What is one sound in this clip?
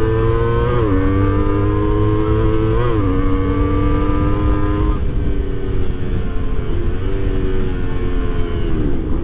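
A motorcycle engine hums steadily up close, shifting pitch as it changes gear.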